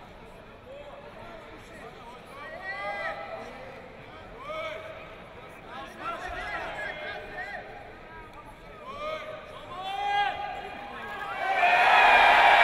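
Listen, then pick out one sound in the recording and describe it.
Men in a crowd shout instructions in a large echoing hall.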